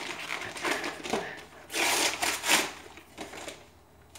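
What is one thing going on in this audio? Paper rustles and tears as a package is opened.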